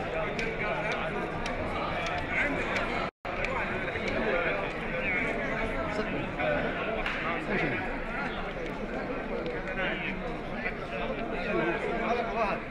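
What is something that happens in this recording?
A crowd of men chatters all around in a large hall.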